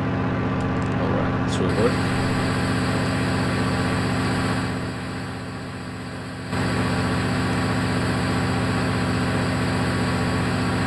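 A propeller engine drones steadily, dipping briefly and then swelling back.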